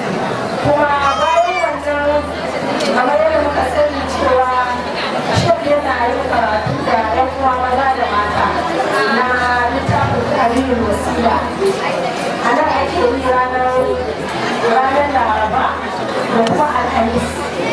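A woman speaks steadily into a microphone, heard through loudspeakers in an echoing room.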